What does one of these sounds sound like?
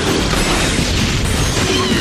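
Explosions boom during a game battle.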